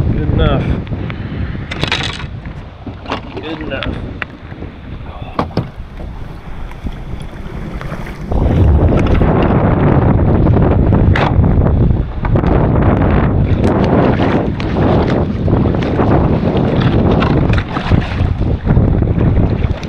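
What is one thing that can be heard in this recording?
Water splashes and laps around a kayak in shallow water.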